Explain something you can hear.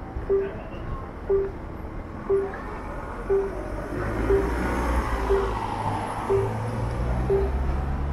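Bicycles roll past across a street.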